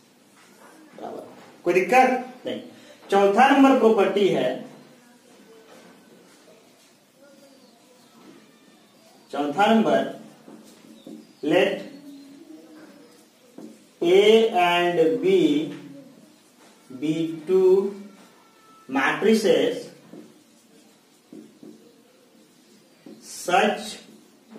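A man explains calmly and clearly, close by, pausing often.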